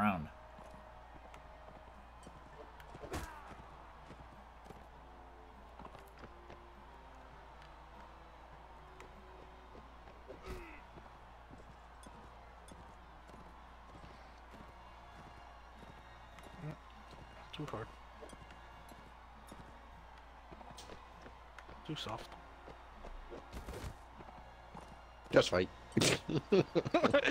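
Horse hooves thud steadily on dry ground.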